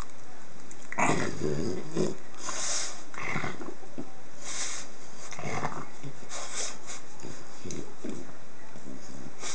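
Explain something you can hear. A hand rubs and scratches a dog's fur.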